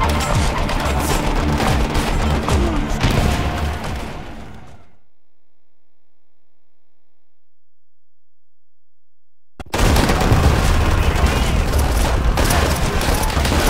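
Rifle shots crack loudly again and again.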